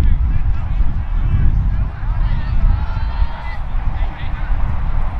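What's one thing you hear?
Wind rumbles loudly across an open field.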